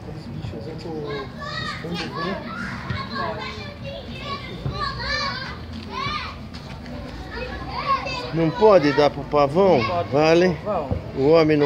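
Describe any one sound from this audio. A toddler girl babbles and squeals close by.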